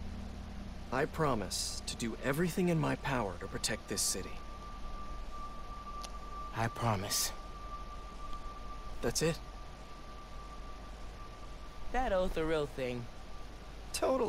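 A young man speaks calmly and earnestly, close by.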